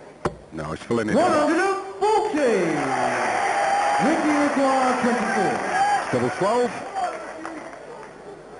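A large crowd cheers and chants loudly in a big hall.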